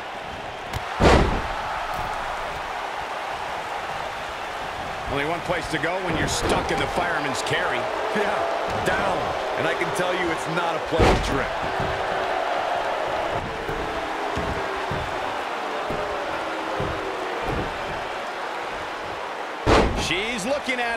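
Bodies slam hard onto a wrestling mat.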